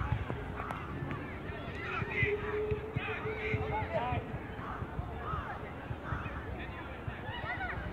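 Young players shout to each other across an open pitch outdoors.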